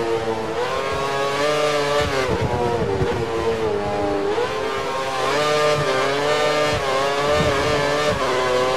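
A racing car engine screams at high revs, its pitch rising and dropping with gear changes.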